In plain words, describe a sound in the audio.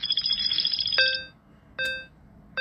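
A short chime rings out.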